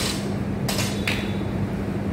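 A metal bar clatters onto a paved floor.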